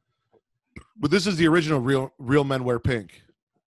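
A man speaks with animation into a close microphone over an online call.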